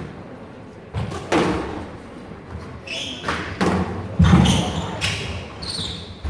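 A squash ball smacks sharply off a racket and the walls in an echoing court.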